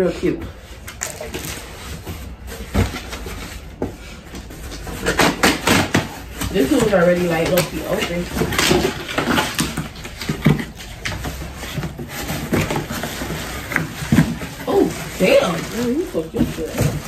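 Cardboard boxes rustle and thump as they are handled.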